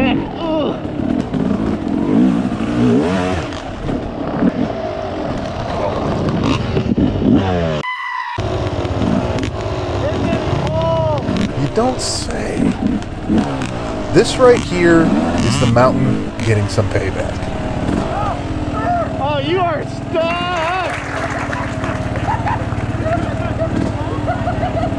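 A two-stroke dirt bike engine revs and sputters.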